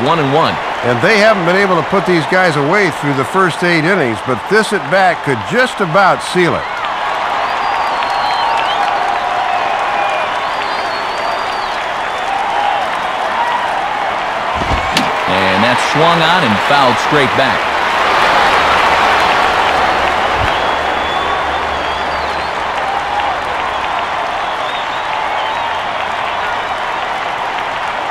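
A large crowd murmurs and cheers steadily in an open stadium.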